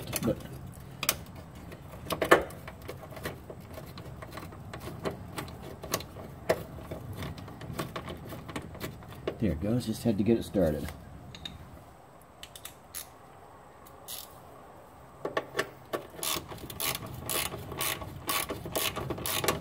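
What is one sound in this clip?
A ratchet wrench clicks rapidly against a bolt.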